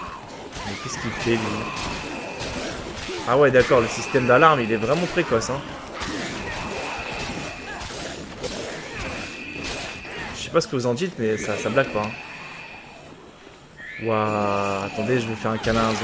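Heavy blows thud and squelch as a weapon strikes bodies.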